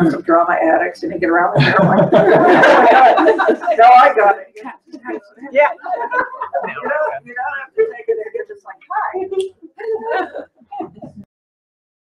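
A woman laughs loudly nearby.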